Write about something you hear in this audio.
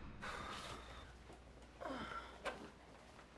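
A woman grunts and strains with effort close by.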